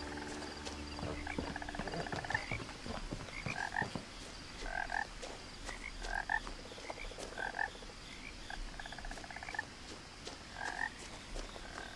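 Footsteps tread slowly along a path outdoors.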